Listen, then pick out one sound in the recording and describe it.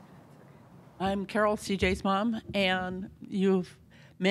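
A woman at a microphone speaks calmly.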